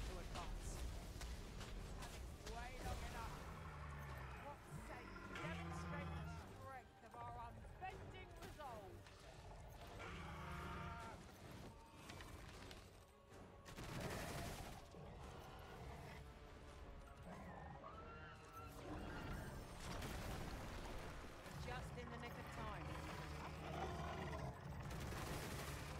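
Magic blasts burst and crackle with loud booming impacts.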